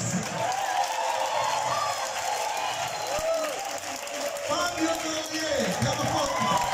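A crowd of men and women cheers and shouts.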